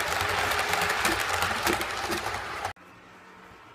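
A model train rattles and clatters loudly past on its track.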